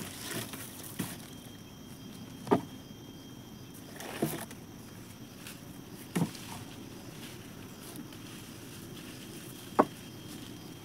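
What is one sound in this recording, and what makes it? Wooden branches knock and thud close by.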